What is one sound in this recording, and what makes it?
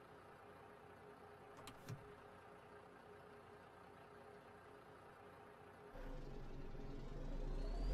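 A truck engine hums steadily and grows louder as it speeds up.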